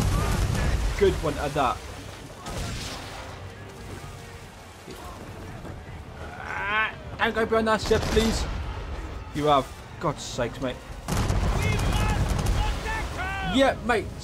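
Cannons boom in heavy, thudding blasts.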